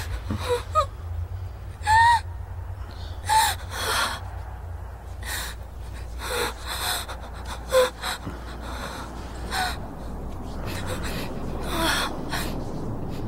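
A young woman sobs and whimpers close by.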